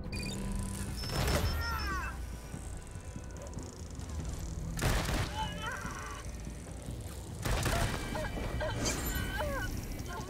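Gunfire bursts out in short bursts.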